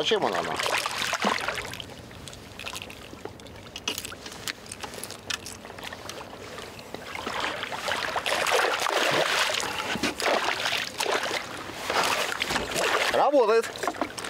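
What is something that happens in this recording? A hooked fish thrashes and splashes at the water's surface.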